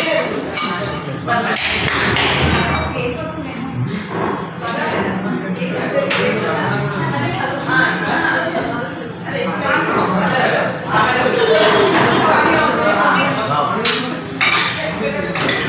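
Metal spatulas tap and scrape on a cold plate.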